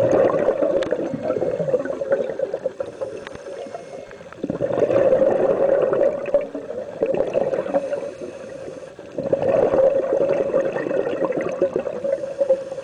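Air bubbles rush and gurgle underwater in repeated bursts.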